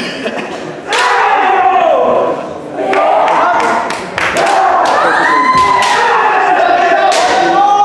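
Kendo fighters shout loud, drawn-out cries in a large echoing hall.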